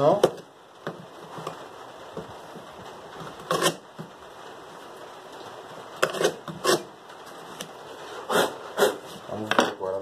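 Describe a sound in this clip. A chisel scrapes and cuts into wood in short bursts.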